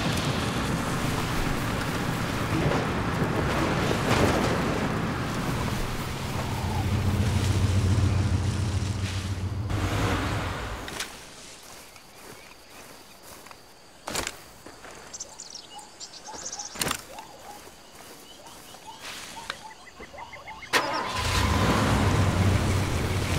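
A vehicle engine rumbles and revs while driving over rough ground.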